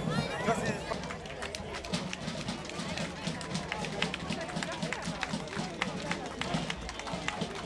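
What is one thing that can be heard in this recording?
Horses' hooves clop steadily on a paved road.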